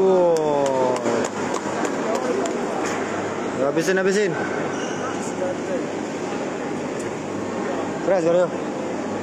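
A crowd of spectators murmurs and chatters.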